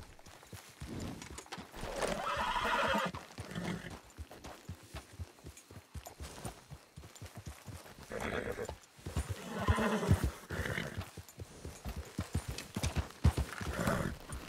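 A horse's hooves thud steadily on grassy, rocky ground.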